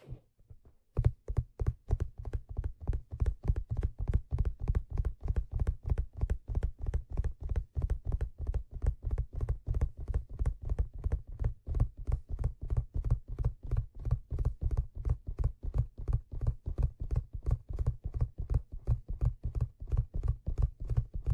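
Fingers tap rapidly and steadily on stiff leather, close up.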